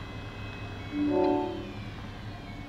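A soft electronic chime sounds once.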